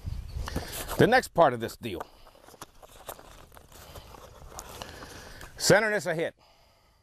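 A man speaks briefly and calmly nearby, outdoors.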